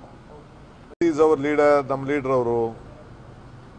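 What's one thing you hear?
A man speaks loudly and briefly, close by.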